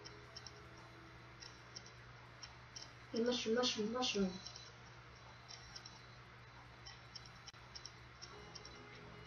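A bright electronic chime rings as a coin is collected.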